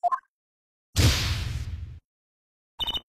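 A deep electronic whoosh sweeps in and fades.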